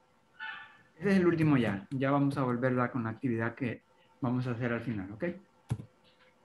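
A woman speaks slowly and clearly over an online call.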